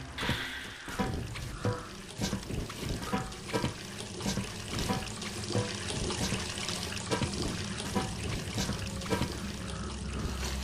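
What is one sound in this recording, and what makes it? Hands and feet clank on metal ladder rungs in a steady climbing rhythm.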